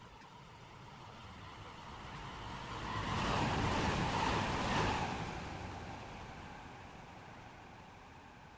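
A train rushes past, growing louder and then fading away.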